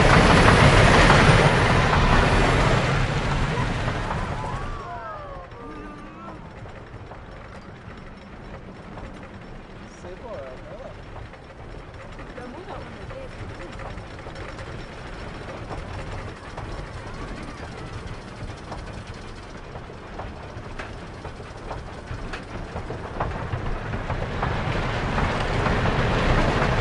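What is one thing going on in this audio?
A roller coaster train rushes loudly along its track.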